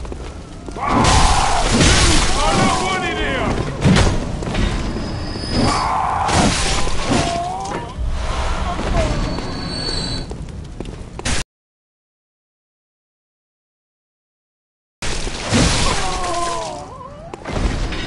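Creatures shriek and screech during a fight.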